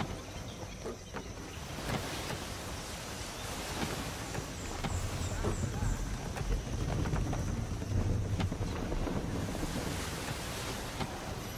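Wind rushes steadily outdoors.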